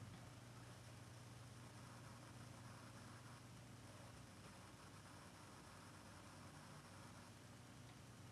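A violin plays softly close by.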